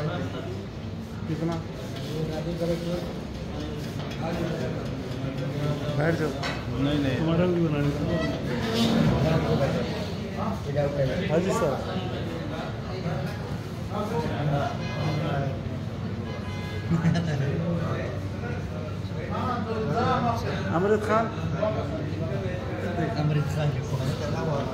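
Several men talk over one another close by, in a lively group conversation.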